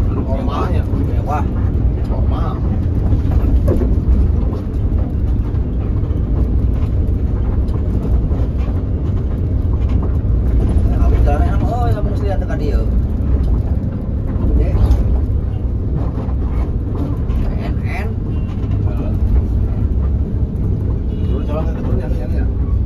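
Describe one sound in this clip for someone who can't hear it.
A bus engine rumbles steadily as it drives.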